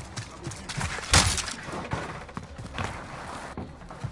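A rifle fires a few sharp shots.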